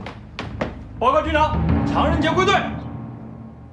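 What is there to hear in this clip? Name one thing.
A man speaks loudly and firmly, close by.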